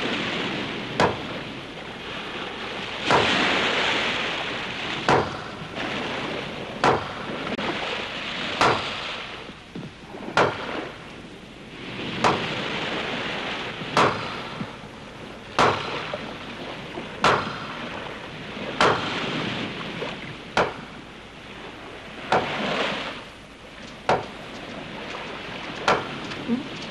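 A man strikes hard blows with a heavy tool at a steady pace.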